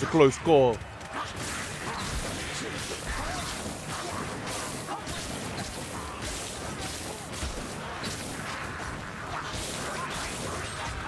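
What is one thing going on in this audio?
Blades hack and strike repeatedly amid a chaotic fight.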